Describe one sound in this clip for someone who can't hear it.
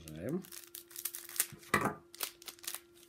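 Scissors snip through a plastic wrapper.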